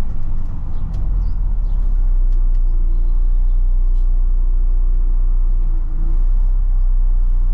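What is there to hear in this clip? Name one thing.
A bus engine idles with a steady low hum while the bus stands still.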